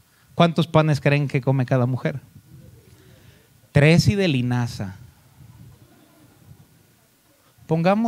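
A man preaches with emphasis into a microphone, in pauses.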